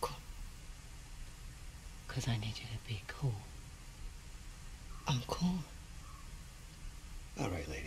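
Another woman answers in a low, calm voice.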